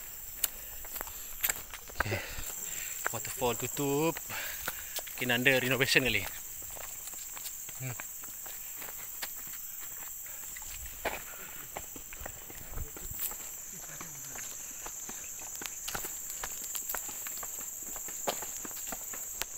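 Footsteps crunch on a gritty path.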